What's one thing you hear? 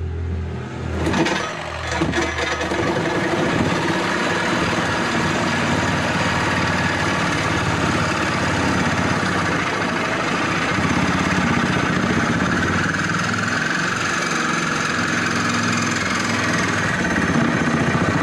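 A power jigsaw whines steadily, cutting through a metal bar close by.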